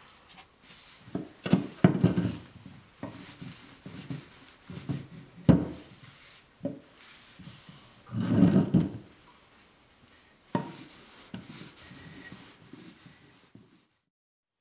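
A hand plane shaves wood in quick, rasping strokes.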